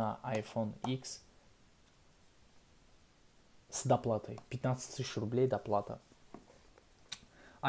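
Fingers handle and tap a cardboard box softly.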